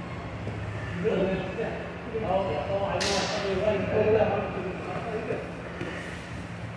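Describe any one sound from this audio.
Men talk nearby with animation in a large echoing room.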